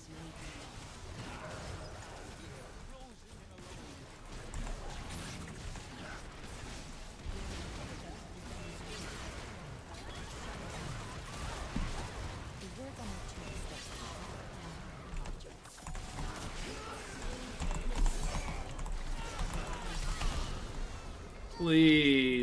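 Video game battle effects crackle and burst.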